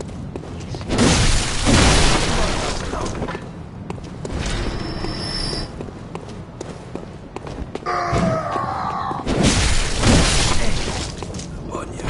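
A blade slashes and strikes flesh with a wet thud.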